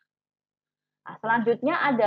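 A young woman speaks calmly into a microphone, as in an online call.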